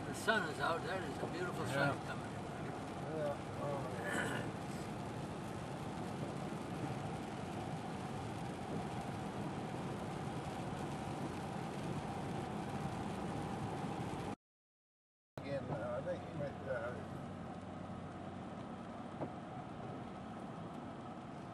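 A car's tyres hiss and rumble steadily on a wet road.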